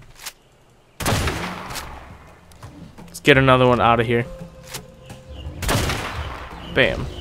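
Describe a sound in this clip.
A rifle fires loud shots that echo.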